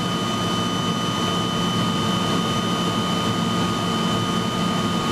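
A jet engine roars loudly and steadily with a high whine, heard from inside the cabin.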